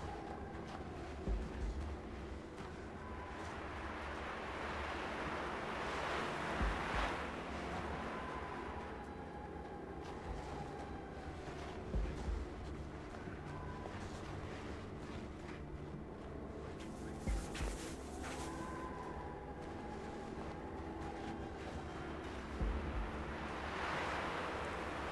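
A strong wind howls and gusts through a snowstorm.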